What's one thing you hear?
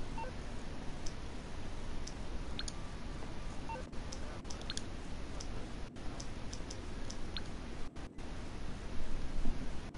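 Soft electronic clicks sound from a phone menu.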